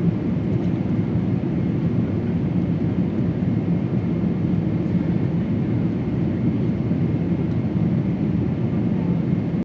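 Jet engines roar steadily with a deep, constant rumble.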